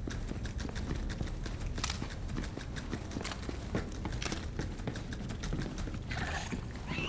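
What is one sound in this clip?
Footsteps tap quickly on a hard metal floor.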